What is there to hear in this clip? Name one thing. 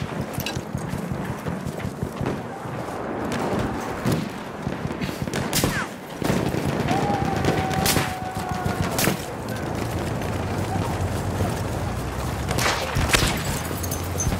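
Gunshots crack and explosions boom nearby.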